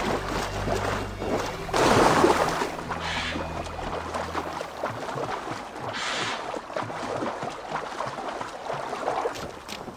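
Water splashes and sloshes as someone swims.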